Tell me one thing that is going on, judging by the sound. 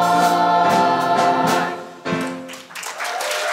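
A children's choir sings loudly with instruments, ending on a held note.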